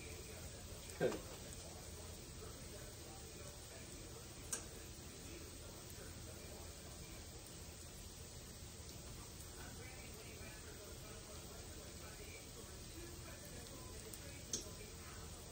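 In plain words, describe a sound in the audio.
A plate clinks softly on a stovetop.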